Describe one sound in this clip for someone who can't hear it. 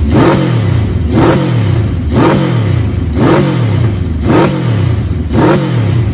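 An inline-four motorcycle revs in short blips, its pitch rising and falling about once a second.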